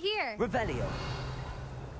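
A magic spell crackles and sparkles.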